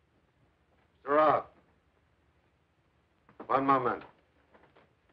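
An elderly man answers calmly.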